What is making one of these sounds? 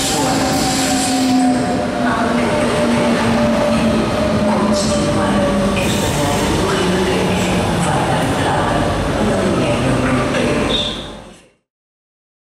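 An electric train pulls along a platform with a rising and falling motor whine.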